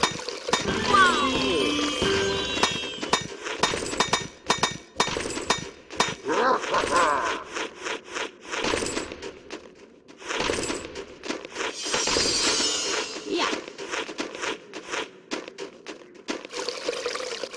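Cheerful game music plays.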